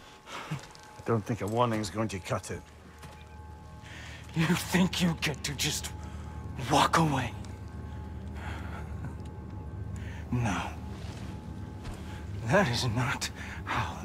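A young man speaks calmly and mockingly, close by.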